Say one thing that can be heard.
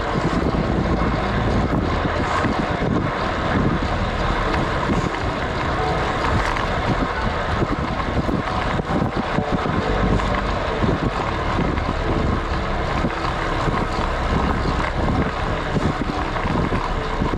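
Wind rushes past a cyclist descending fast on a road bike.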